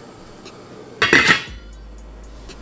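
A metal lid clinks onto a pot.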